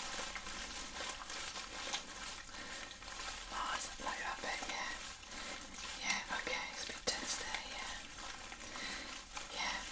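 An adult woman speaks softly close to a microphone.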